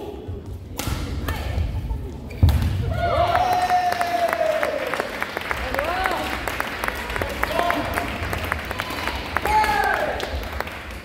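Rackets strike a shuttlecock with light pops.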